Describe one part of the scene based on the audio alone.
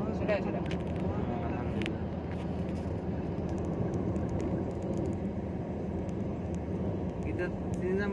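Tyres roll steadily over a road at speed.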